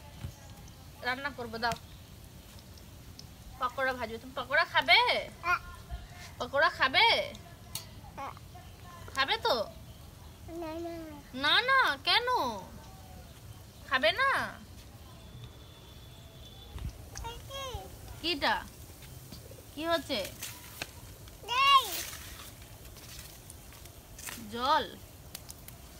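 A young woman talks gently and playfully to a small child close by.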